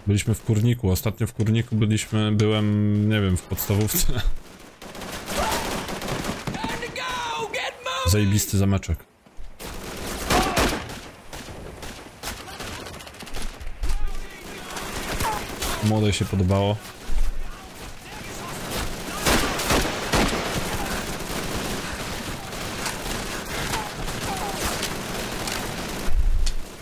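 Rifle shots crack repeatedly.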